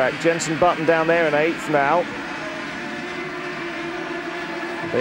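Kart engines buzz loudly as karts race past.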